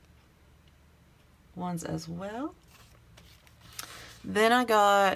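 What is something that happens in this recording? Sheets of paper rustle softly as they are handled.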